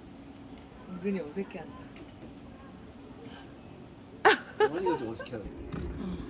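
A young girl speaks and laughs nearby.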